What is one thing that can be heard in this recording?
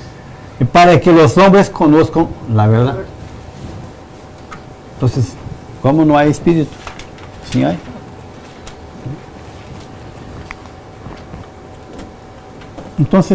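A middle-aged man speaks calmly in a quiet room, with long pauses.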